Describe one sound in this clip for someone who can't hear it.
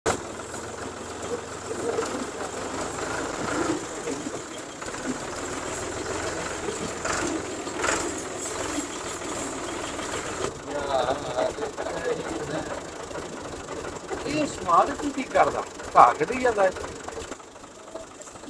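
A tractor engine chugs steadily.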